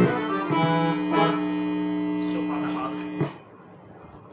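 An electronic keyboard plays sustained chords up close.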